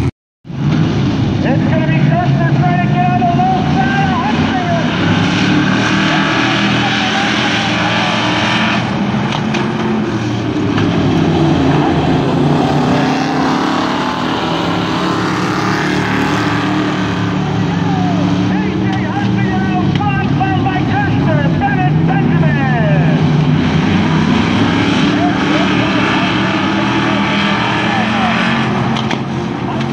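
Race car engines roar and drone steadily.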